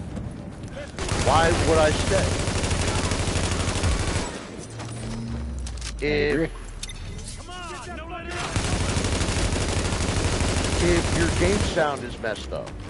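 A rifle fires in rapid, rattling bursts.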